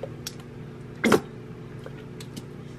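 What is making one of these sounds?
A sauce bottle squirts.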